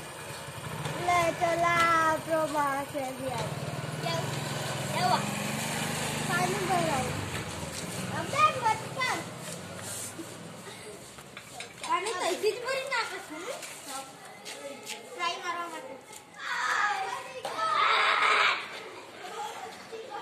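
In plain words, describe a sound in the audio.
Young boys talk and shout excitedly nearby.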